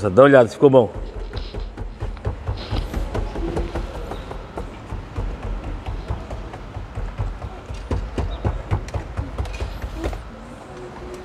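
A hand taps and rubs a plastic dashboard.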